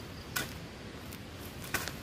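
Plants rustle and tear as they are pulled from the ground.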